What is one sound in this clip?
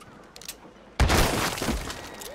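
A revolver fires a loud shot.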